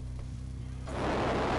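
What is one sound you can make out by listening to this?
A jet engine roars.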